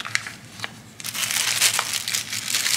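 A plastic bag crinkles loudly.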